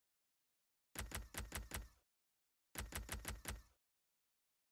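Short electronic menu ticks sound in quick bursts.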